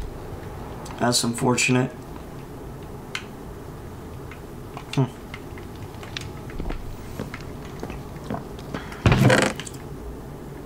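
A young man talks briefly into a close microphone, in short bursts.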